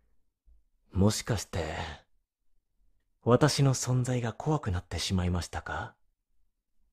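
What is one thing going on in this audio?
A young man speaks softly and slowly, close to a microphone.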